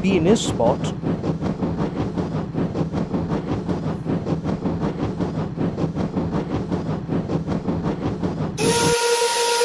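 A toy train's motor whirs as its wheels click rhythmically along plastic track.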